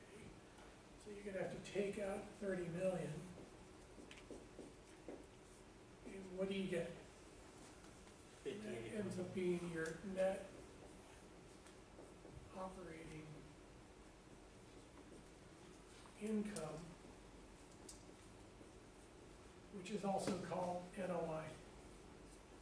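A man talks calmly in short bursts, a little way off in a room.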